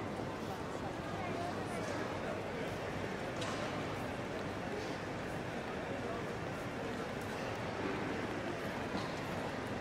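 Footsteps shuffle and click on a hard floor.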